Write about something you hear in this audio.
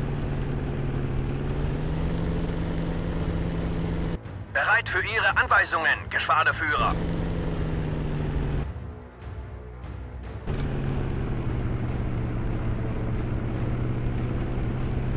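A propeller engine drones steadily, with breaks.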